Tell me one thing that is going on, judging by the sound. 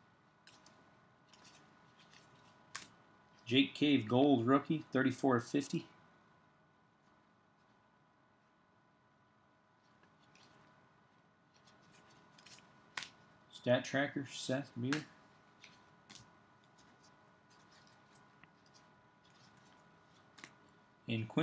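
Trading cards slide and flick against each other in a stack.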